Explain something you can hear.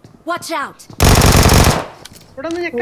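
Rapid gunfire bursts out loudly.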